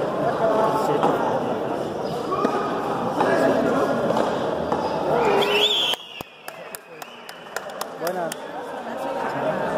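A handball smacks against a wall in an echoing court.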